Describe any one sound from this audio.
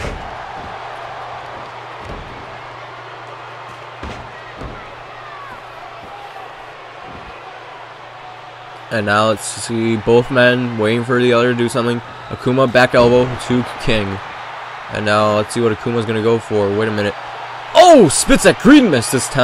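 A crowd cheers and murmurs steadily in a large arena.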